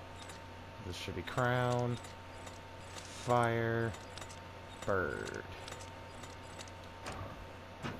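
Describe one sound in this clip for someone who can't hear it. A stone dial clicks as it turns.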